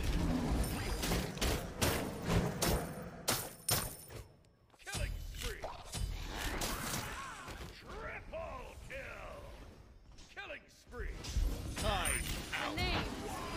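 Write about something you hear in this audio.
Sharp magical blasts and weapon hits crackle in quick bursts.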